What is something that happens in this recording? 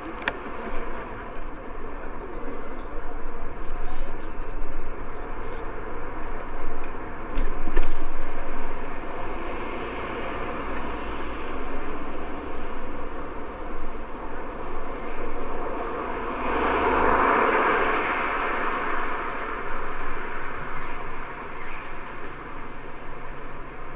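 Bicycle tyres roll over paving.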